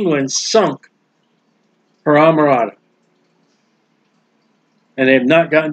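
A middle-aged man speaks calmly through a microphone on an online call, in short phrases with pauses.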